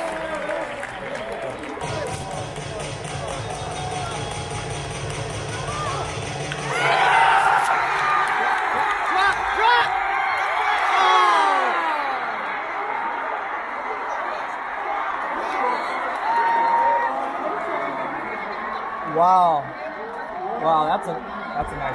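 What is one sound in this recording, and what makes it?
A large crowd cheers and chatters in a big open stadium.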